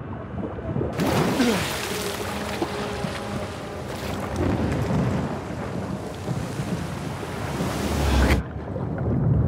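Heavy rain and rough waves roar loudly all around.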